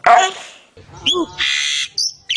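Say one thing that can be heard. A bird screeches loudly.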